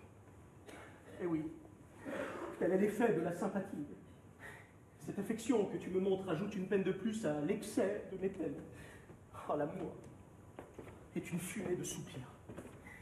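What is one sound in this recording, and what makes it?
A man speaks with emotion close by.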